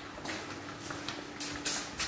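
Flip-flops slap on a hard floor.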